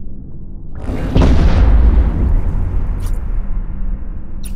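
A large explosion booms and rumbles away.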